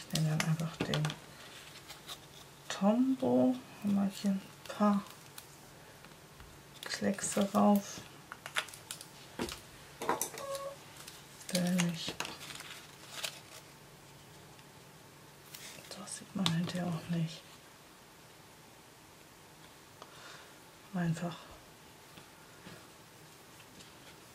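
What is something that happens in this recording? Tissue paper rustles and crinkles as hands handle it.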